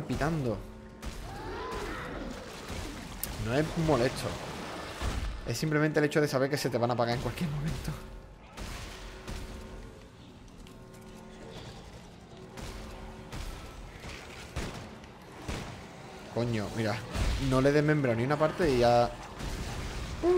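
A weapon fires in sharp bursts.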